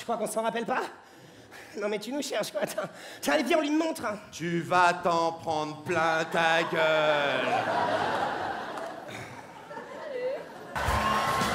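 A young man speaks with animation through a microphone on stage.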